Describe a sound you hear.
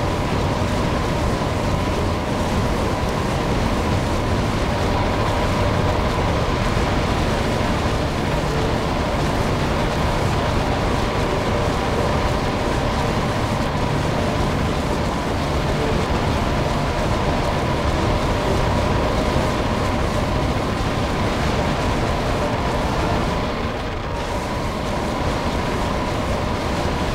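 Spell effects crackle and burst as units battle.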